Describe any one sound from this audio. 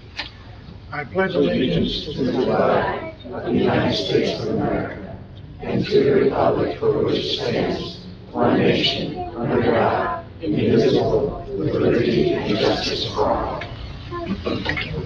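A group of men and women recite together in unison in a large room.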